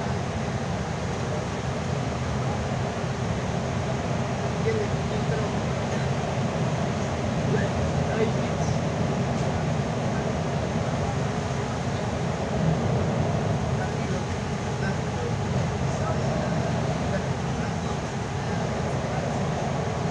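Tyres roll over a wet, slushy road.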